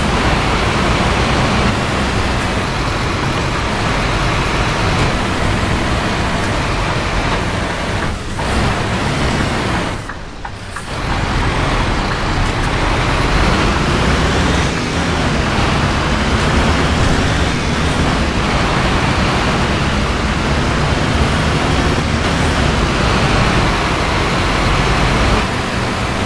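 Rain patters steadily on the windscreen.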